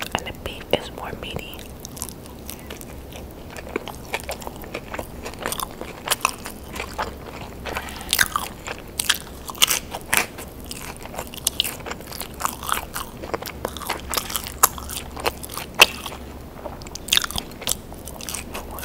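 A woman chews crunchy food close to a microphone.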